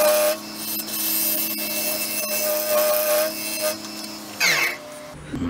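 A gouge scrapes and cuts spinning wood with a rough hiss.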